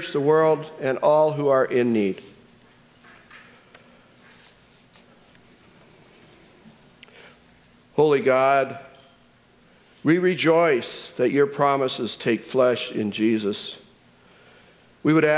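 A middle-aged man speaks slowly and solemnly into a microphone, in a room with some echo.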